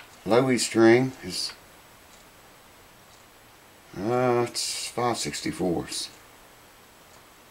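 A metal file scrapes lightly along a guitar's frets.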